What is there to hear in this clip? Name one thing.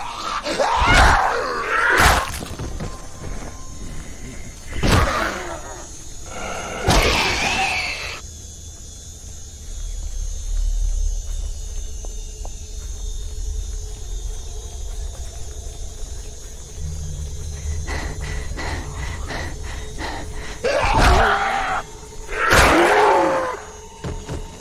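A creature snarls and shrieks close by.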